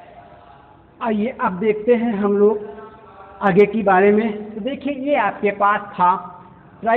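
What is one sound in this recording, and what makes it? An elderly man speaks calmly and clearly, as if teaching, close by.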